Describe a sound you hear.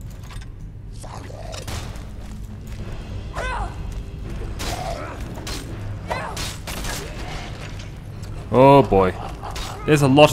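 Heavy metal weapons swing and strike with sharp clanks.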